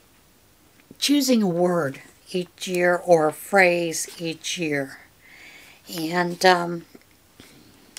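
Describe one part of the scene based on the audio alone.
An older woman speaks calmly and close by, with pauses.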